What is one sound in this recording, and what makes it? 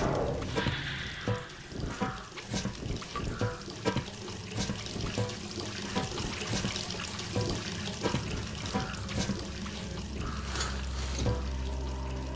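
Hands and boots clank on metal ladder rungs in a slow, steady rhythm.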